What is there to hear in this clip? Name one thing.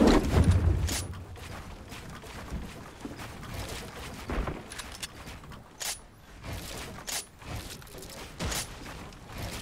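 Wooden panels snap into place with sharp clacks.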